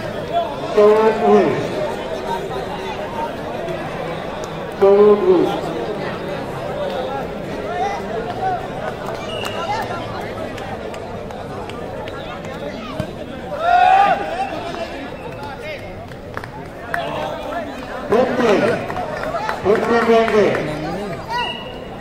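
A man shouts loudly over a loudspeaker.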